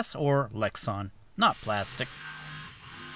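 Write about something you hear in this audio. A jigsaw revs up and down in short bursts.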